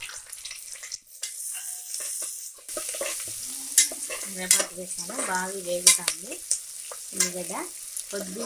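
A metal spatula scrapes and clatters against a pot.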